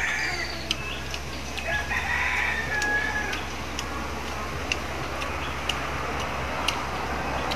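Snail shells click and clatter.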